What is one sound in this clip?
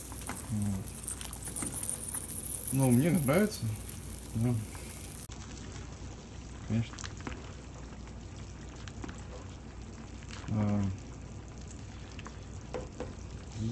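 A spatula stirs and scrapes in a pot.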